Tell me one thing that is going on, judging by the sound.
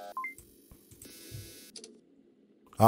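Electronic static hisses and crackles.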